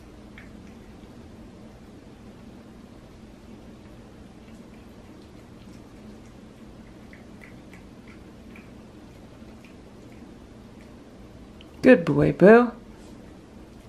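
A cat chews food quietly.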